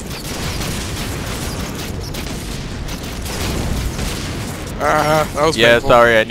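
Lightning spells crackle and zap amid game battle noise.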